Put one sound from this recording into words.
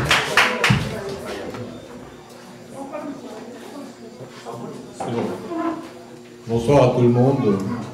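A middle-aged man speaks into a microphone, heard through a loudspeaker.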